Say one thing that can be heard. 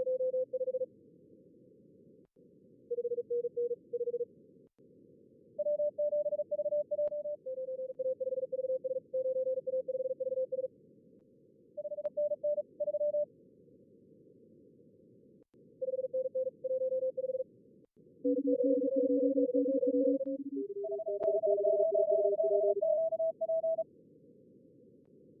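Radio static hisses softly and steadily.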